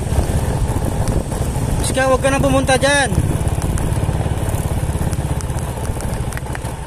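A motorcycle engine hums as the motorcycle approaches along a street.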